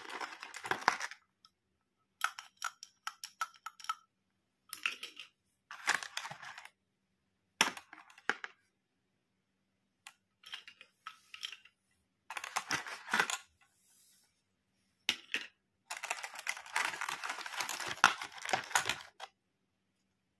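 Plastic toys click and rattle as they are handled.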